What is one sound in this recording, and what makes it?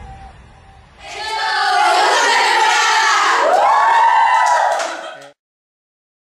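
A group of young women shout and cheer together loudly.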